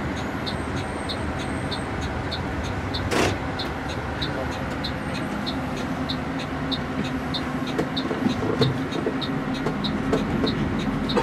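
A bus engine rumbles steadily from inside as it drives along a road.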